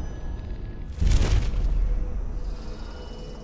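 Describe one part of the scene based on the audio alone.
A loud rushing whoosh sweeps past and fades.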